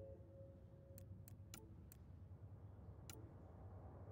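Soft menu clicks tick a few times.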